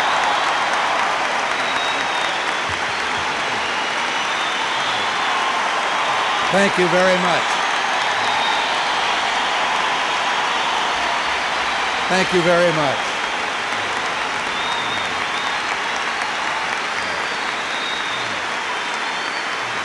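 A large crowd applauds steadily in a big echoing hall.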